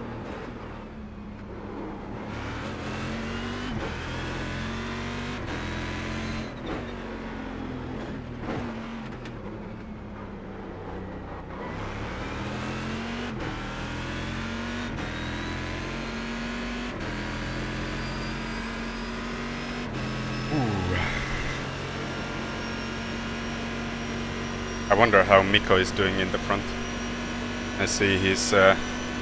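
A racing car engine roars, rising and falling in pitch as the gears shift.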